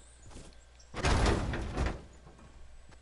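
Car glass shatters with a loud crash.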